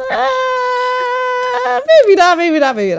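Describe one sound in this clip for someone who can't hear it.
A young woman squeals loudly into a microphone.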